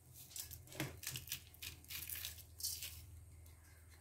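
Dry spices are sprinkled onto raw meat in a pot.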